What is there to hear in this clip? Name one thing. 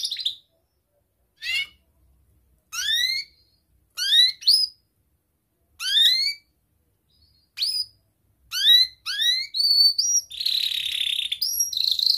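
A canary sings close by in bright, rising chirps and trills, in short bursts.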